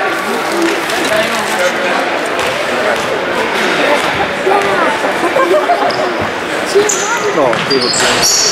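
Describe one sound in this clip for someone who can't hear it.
A crowd of spectators chatters and calls out in an echoing gym.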